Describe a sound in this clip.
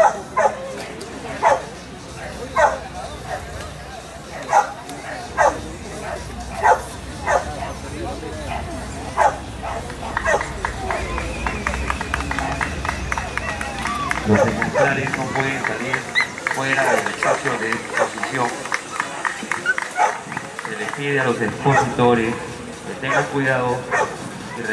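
Adult men chat calmly nearby outdoors.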